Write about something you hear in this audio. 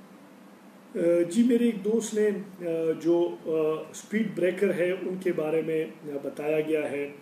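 A middle-aged man speaks calmly and steadily close to a microphone.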